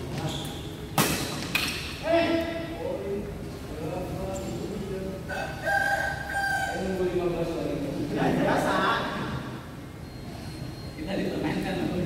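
A racket strikes a shuttlecock with a sharp smack.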